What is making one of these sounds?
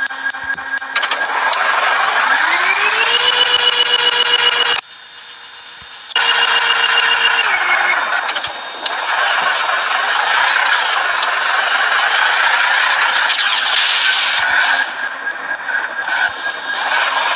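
A monster truck engine revs up and roars.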